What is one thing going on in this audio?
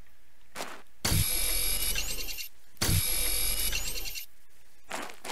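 A laser tool hums and crackles as it cuts into rock.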